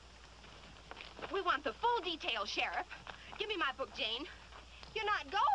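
A woman speaks urgently, close by.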